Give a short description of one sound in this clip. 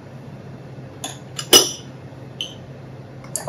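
Ceramic cups clink as they are set down.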